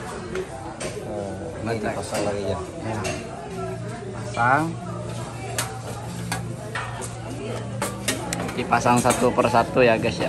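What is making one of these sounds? A metal panel clanks as it is handled.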